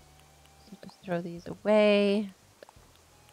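A young woman speaks briefly and with animation close to a microphone.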